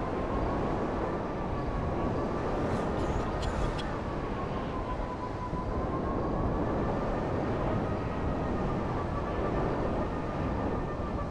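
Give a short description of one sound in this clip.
A futuristic engine hums steadily, its pitch drifting slightly up and down.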